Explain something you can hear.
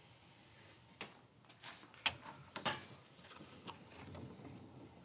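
A roller rolls along wood with soft clicks.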